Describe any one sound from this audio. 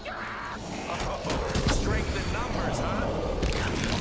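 A zombie growls up close.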